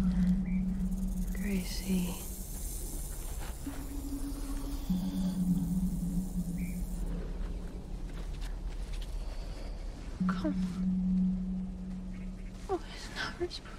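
A young woman speaks softly and quietly, close by.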